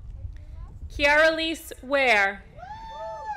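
A woman announces loudly through a loudspeaker in an open, echoing outdoor space.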